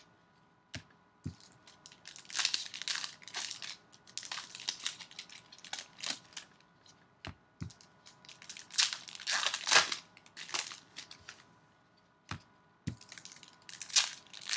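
Trading cards shuffle and tap against each other.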